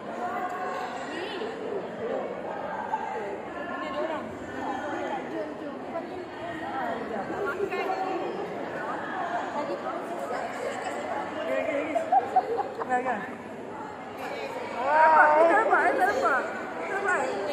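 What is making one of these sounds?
A crowd of women chatter.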